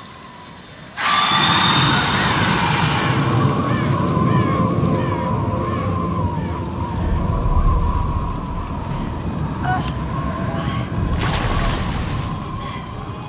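Water sloshes and splashes as someone wades through a stream.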